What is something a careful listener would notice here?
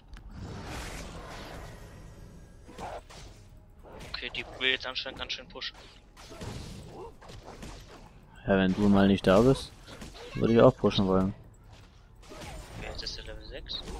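Weapons clash and thud in a fantasy battle.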